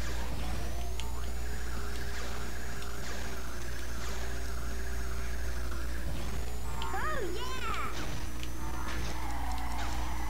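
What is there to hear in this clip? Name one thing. A toy racing kart's engine whines steadily.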